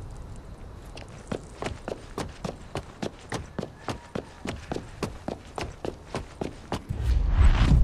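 Quick footsteps run over pavement.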